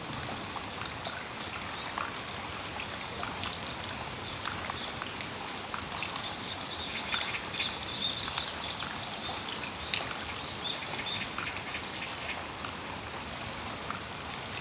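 Water drips and taps irregularly from the roof edge.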